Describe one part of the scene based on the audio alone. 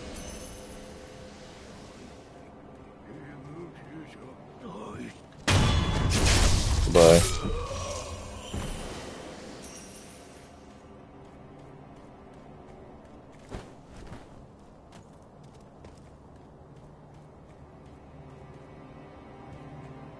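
Footsteps crunch on leaves and stone.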